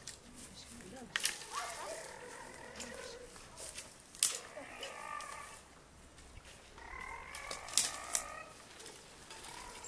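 Dry brushwood crackles and rustles as it is gathered by hand.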